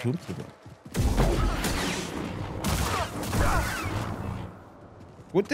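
Energy blades hum and clash in a fierce fight.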